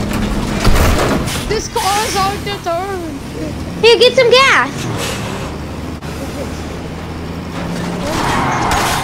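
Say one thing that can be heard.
A truck engine rumbles as it drives.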